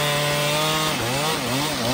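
A chainsaw engine revs up and down.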